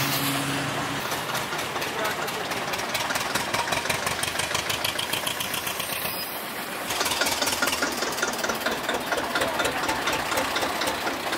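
A tractor engine chugs loudly up close with a rapid knocking beat.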